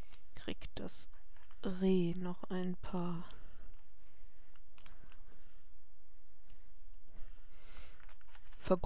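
Paper rustles and taps softly as small cut pieces are handled.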